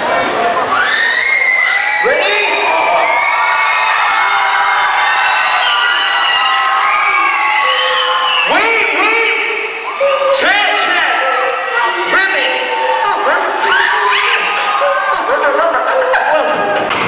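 A young man sings through a microphone in a large echoing hall.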